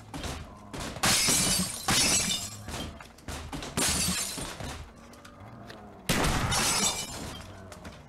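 Gunshots blast loudly in quick bursts.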